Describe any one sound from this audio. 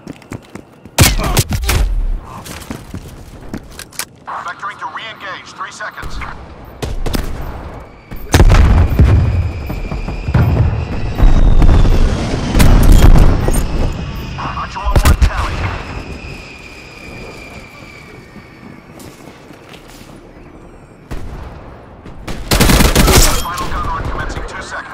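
Gunfire bursts out in loud rapid volleys.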